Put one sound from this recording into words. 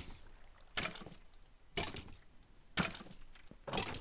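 An arrow thuds into a wooden door.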